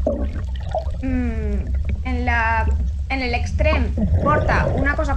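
A whale calls underwater with rising and falling moans.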